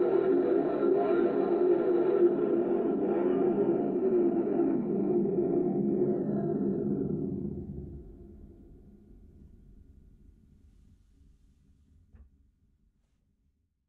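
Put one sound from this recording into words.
Strings of a harp-like instrument ring out in a sustained chord and slowly fade away.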